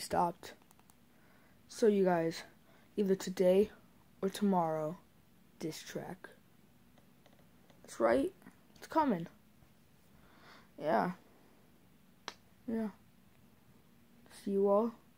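A boy talks casually in short bursts, close to the microphone.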